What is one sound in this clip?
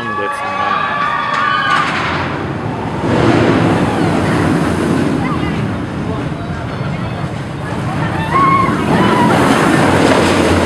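Riders scream on a roller coaster.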